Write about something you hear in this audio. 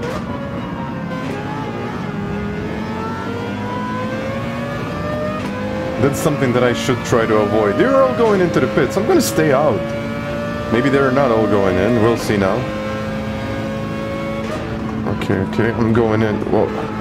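A racing car engine drones and rises in pitch as it speeds up.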